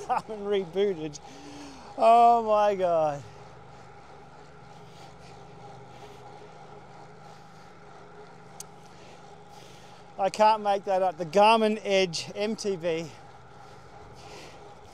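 Bicycle tyres hum on smooth road.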